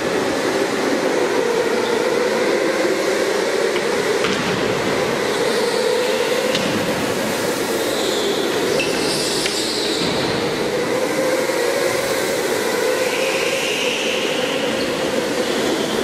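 Go-kart engines buzz and whine in a large echoing hall.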